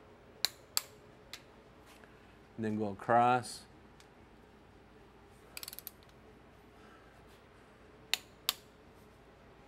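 A ratchet wrench clicks sharply as bolts are tightened.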